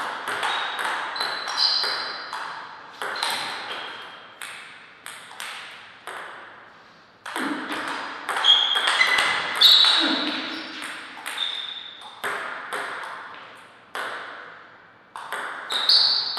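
A table tennis ball taps sharply back and forth, ringing in an echoing hall.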